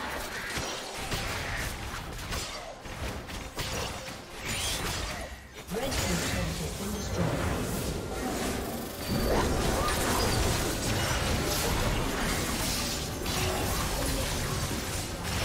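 Magic blasts and weapon clashes crackle in a fast battle.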